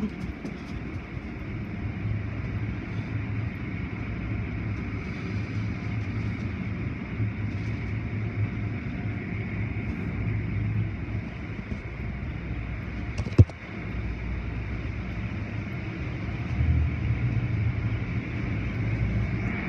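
Water sprays hard against a car.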